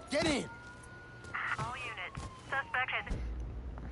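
A car door slams shut.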